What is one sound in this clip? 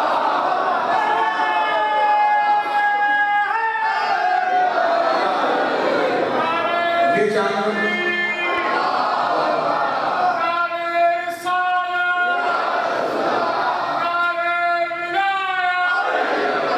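A man chants in a strong, sustained voice through a loudspeaker.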